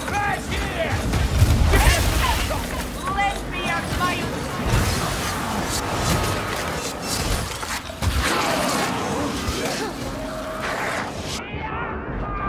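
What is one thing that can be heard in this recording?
Weapons clash and thud in a fierce battle.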